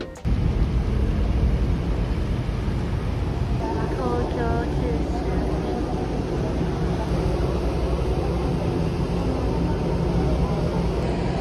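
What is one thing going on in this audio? A large ship's engines hum low and steadily nearby.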